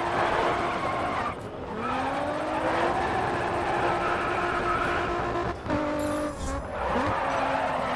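A car engine revs hard and its pitch rises and falls.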